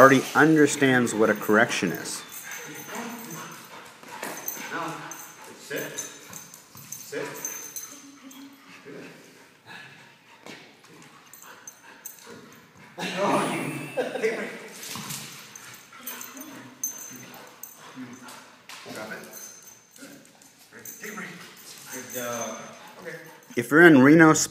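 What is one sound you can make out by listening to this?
A man talks calmly to a dog nearby.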